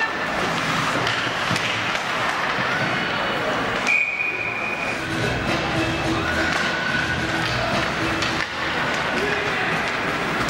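Spectators murmur and chatter in the stands.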